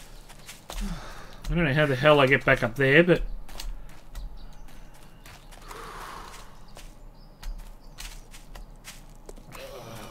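Footsteps scrape and tap on rock.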